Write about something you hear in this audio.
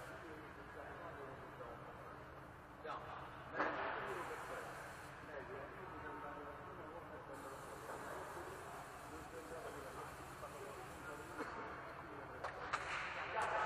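Young men talk quietly at a distance in an echoing hall.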